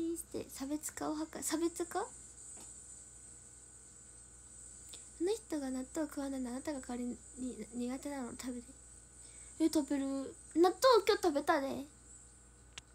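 A young woman talks casually and close to a microphone.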